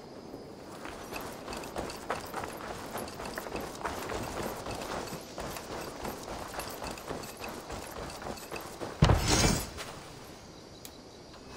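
Footsteps run over a dirt path.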